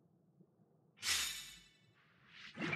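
A bright game chime sounds.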